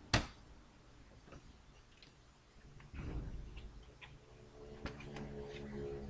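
A plastic console casing knocks on a table as it is lifted and set down.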